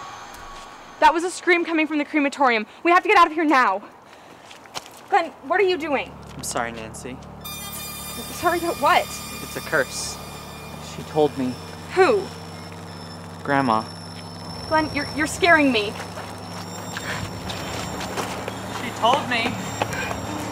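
A teenage boy talks tensely nearby.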